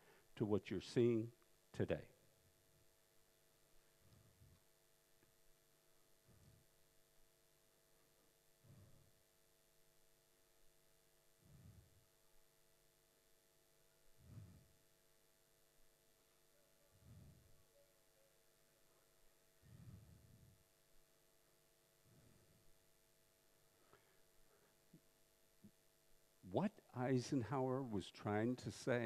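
A man speaks calmly into a headset microphone.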